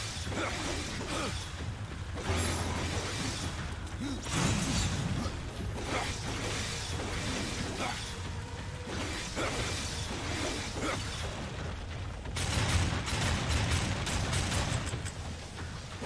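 Magical blasts burst and crackle.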